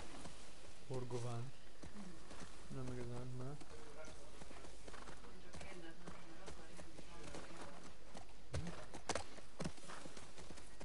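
A horse's hooves thud steadily on a soft forest path.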